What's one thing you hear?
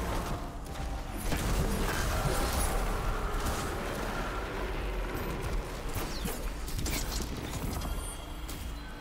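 Gunfire and blasts crack in quick bursts.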